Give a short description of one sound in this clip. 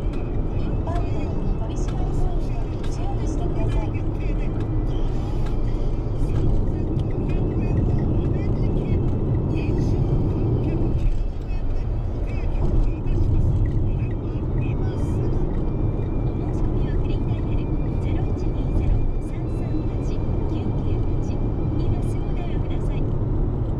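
A large vehicle's engine rumbles steadily from inside the cab.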